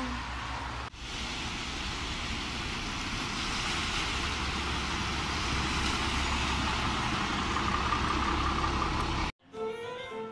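A bus drives by on a wet road with its tyres swishing through water.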